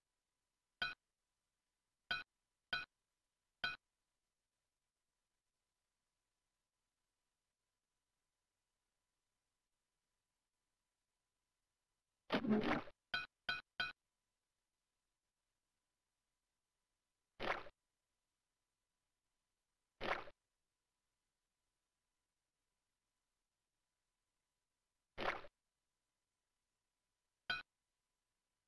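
Short bright electronic chimes ring out now and then, in quick bursts.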